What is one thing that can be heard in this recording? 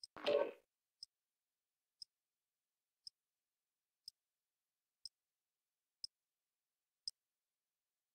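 A short, high electronic beep ticks once a second as a countdown.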